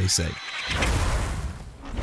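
A blade whooshes through the air in a quick dash.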